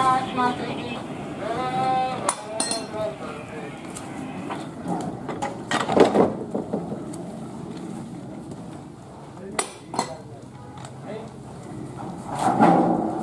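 A train rumbles slowly along the rails.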